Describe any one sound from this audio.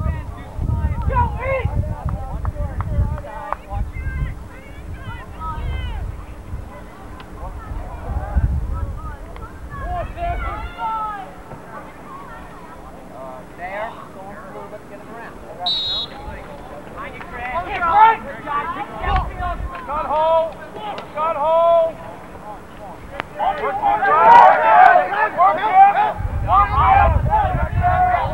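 Young people shout and call out across an open field.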